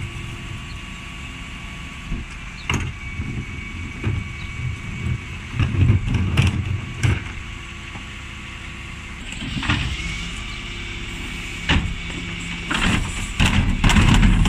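A bin lift whines and clanks as it tips wheelie bins.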